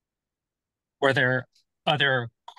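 A middle-aged man speaks calmly and close to a microphone, heard through an online call.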